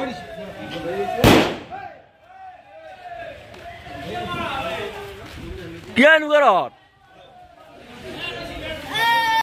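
A crowd of young men shouts and cheers excitedly nearby.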